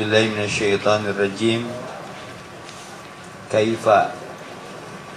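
A young man speaks calmly into a microphone, heard through a loudspeaker.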